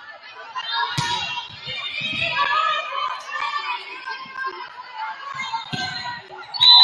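A volleyball is struck with sharp smacks.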